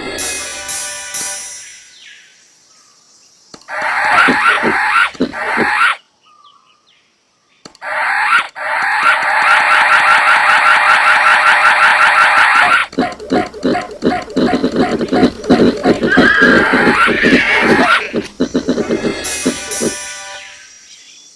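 Cheerful game music plays with chiming jingles.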